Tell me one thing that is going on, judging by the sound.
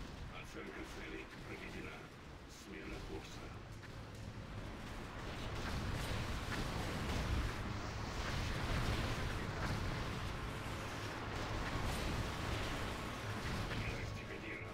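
Game explosions and spell effects rumble and crackle.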